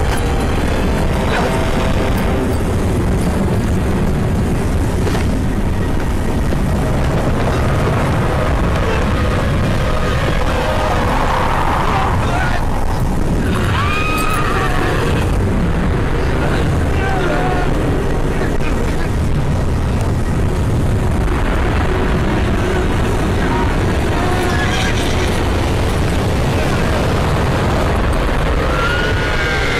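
Strong wind roars and howls through a dust storm.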